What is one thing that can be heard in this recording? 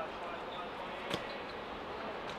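A football is kicked on artificial turf.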